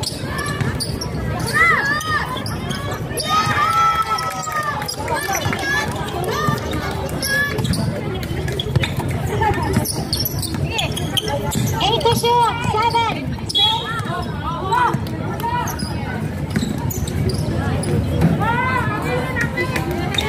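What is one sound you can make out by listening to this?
A crowd of young spectators shouts and cheers nearby outdoors.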